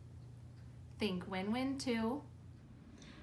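A second woman speaks calmly, close up.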